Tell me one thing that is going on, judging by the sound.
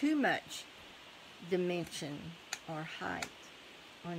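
Paper rustles softly under fingers.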